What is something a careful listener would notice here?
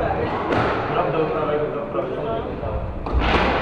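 Squash shoes squeak on a wooden floor.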